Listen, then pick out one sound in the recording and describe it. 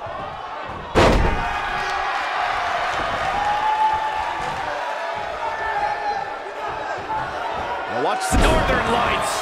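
A heavy body slams onto a wrestling ring mat with a loud thud.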